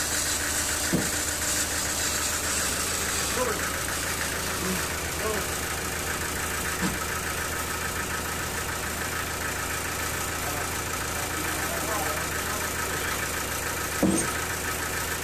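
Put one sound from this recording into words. Wooden boards knock and clatter as they are handled.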